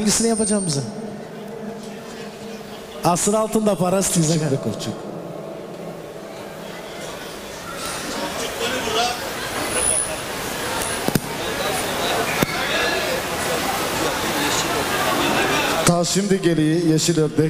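A crowd of guests chatters in the background.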